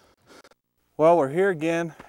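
A man speaks calmly to the listener.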